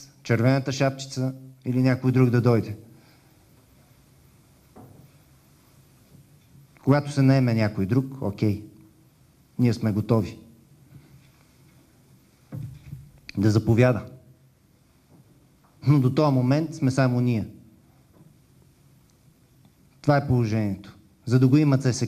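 A middle-aged man speaks calmly into a microphone in short bursts with pauses.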